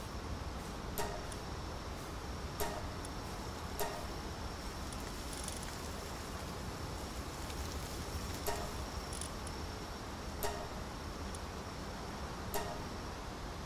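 Short soft clicks sound now and then, like a game menu being clicked through.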